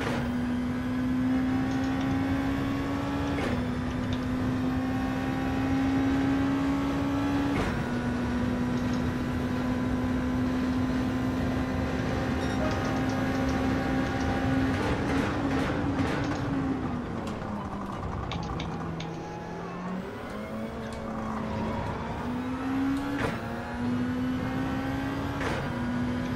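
A racing car engine roars at high revs, shifting up through the gears.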